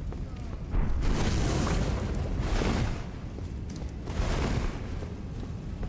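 A heavy weapon whooshes through the air in several swings.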